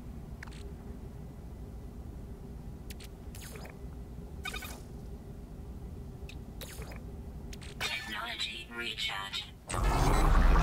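Short electronic clicks and chimes sound as menu options are selected.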